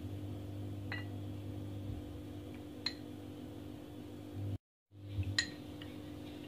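A metal spoon clinks against a glass bowl.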